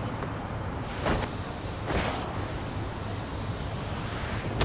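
Skateboard wheels roll and clatter on pavement.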